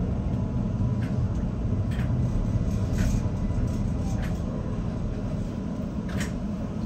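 Train wheels click and squeal over rail joints.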